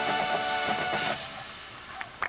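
A brass band plays a loud held chord that cuts off sharply.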